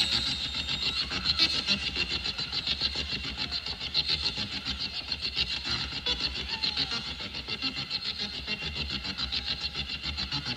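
A rock band plays loudly and steadily.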